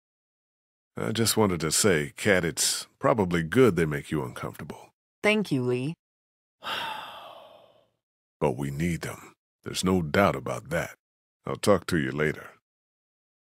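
A man speaks calmly and earnestly up close.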